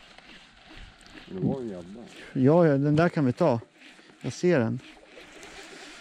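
A fishing reel whirs softly as the line is wound in.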